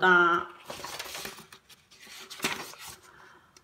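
A page of a book rustles as it is turned.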